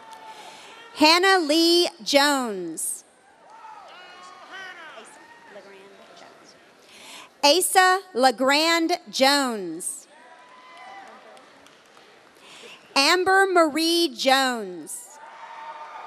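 A man reads out names over a loudspeaker in a large echoing hall.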